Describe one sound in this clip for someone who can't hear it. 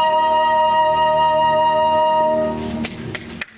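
A piano plays a sustained chord that fades out.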